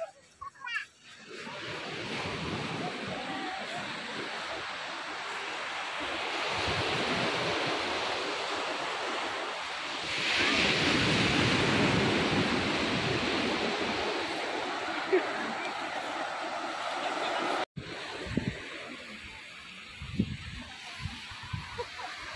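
Waves wash onto a beach in a steady rush.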